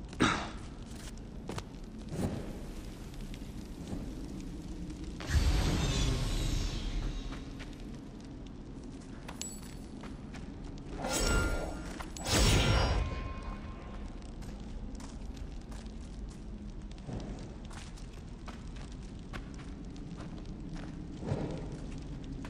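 A torch flame crackles and hisses softly.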